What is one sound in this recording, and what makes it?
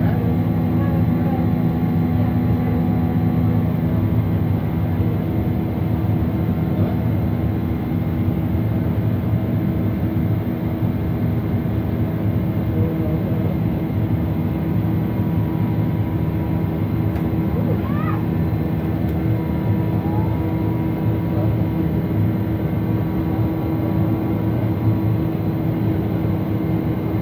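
Aircraft engines roar steadily with a loud, deep hum.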